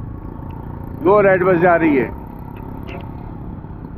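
A motor rickshaw engine putters nearby.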